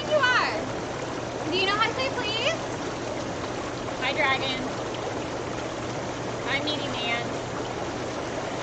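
Water bubbles and churns steadily.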